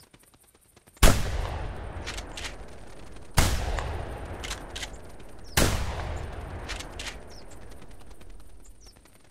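A shotgun fires loud booming shots that echo away outdoors.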